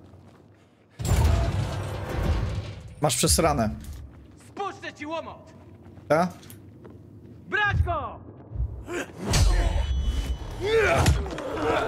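A man's voice speaks in a game.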